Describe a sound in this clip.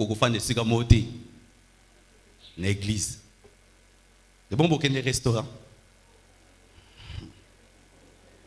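A man preaches with animation into a microphone, heard through a loudspeaker in a large hall.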